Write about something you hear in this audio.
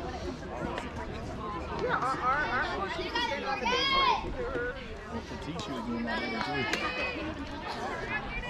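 Young players call out and shout across an open field outdoors.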